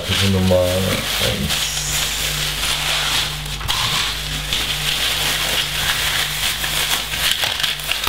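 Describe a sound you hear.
Paper pages rustle as a booklet is handled.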